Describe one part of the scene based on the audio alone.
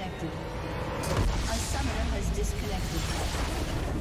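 A large structure explodes with a deep boom.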